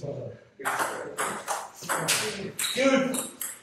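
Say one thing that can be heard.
A ping pong ball clicks off paddles and the table.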